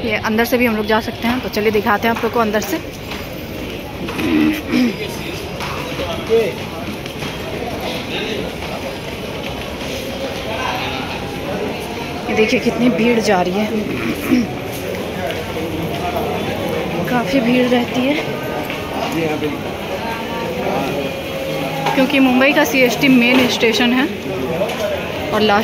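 A crowd murmurs and chatters nearby, echoing in a large hall.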